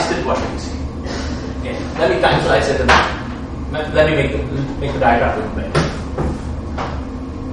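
A young man speaks calmly, lecturing in a room with a slight echo.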